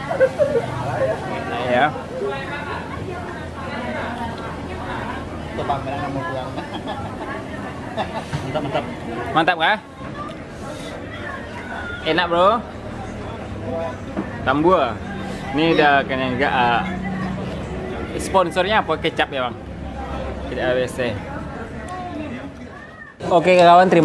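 Voices chatter in a busy room.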